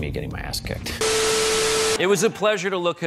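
Television static hisses loudly and steadily.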